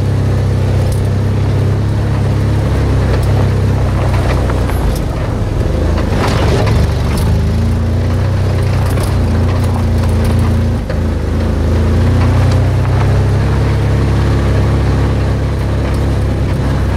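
Tyres rumble and crunch over a bumpy dirt road.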